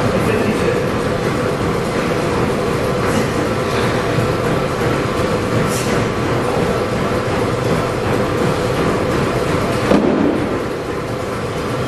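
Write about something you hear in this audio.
Dumbbells knock softly against the rack as they are lifted and set down.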